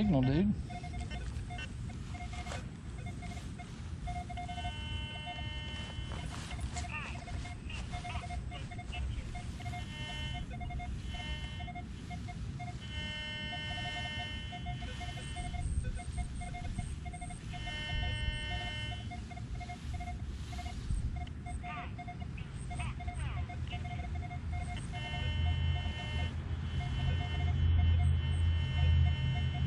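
A metal detector gives off steady, warbling electronic beeps as it sweeps back and forth.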